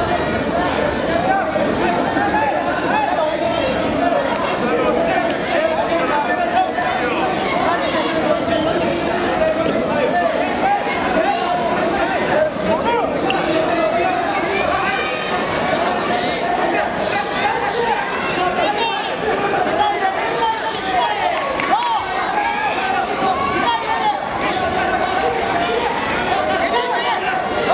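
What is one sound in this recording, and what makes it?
A large crowd chatters and shouts throughout, echoing in a big hall.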